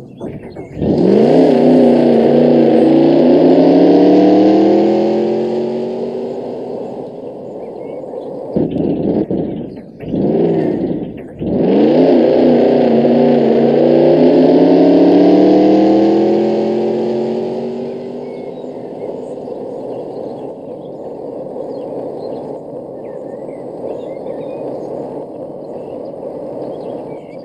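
A game car engine revs up, rising in pitch, then holds steady with a few brief breaks.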